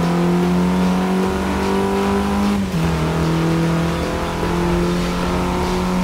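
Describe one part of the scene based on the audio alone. A car engine roars steadily, its pitch climbing then dropping briefly as it shifts gear.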